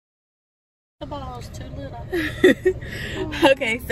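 A woman laughs and talks loudly close by.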